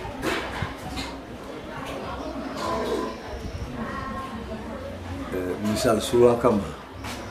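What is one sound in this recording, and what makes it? An elderly man speaks calmly and close to a microphone.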